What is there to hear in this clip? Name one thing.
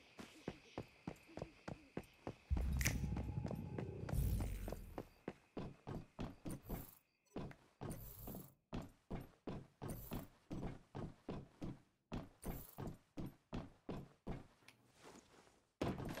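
Boots thud on a hard floor in quick, steady footsteps.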